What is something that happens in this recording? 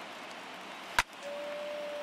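A wooden bat cracks against a baseball.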